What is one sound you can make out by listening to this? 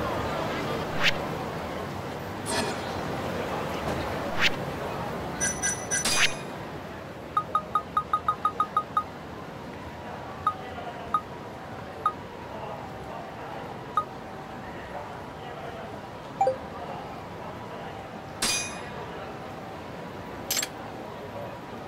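Short menu clicks and blips sound as options are chosen.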